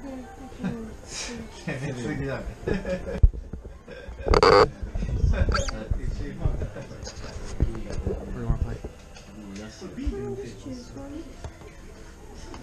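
A crowd of men and women chatter nearby in a busy room.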